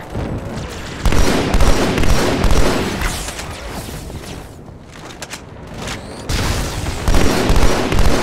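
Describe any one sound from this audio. Energy weapons whine and crackle.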